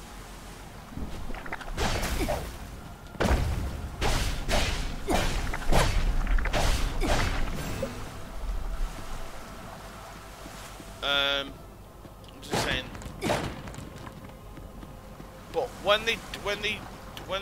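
Sword slashes and impacts clash in a video game fight.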